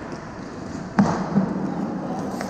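A hockey stick smacks a puck with a sharp crack.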